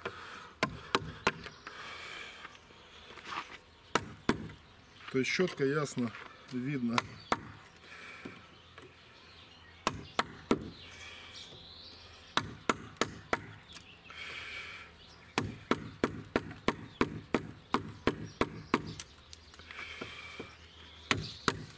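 A chisel shaves and scrapes wood.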